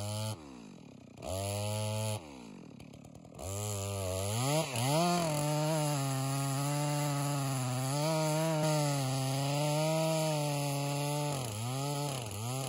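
A chainsaw engine idles, revs up and roars as it cuts through wood.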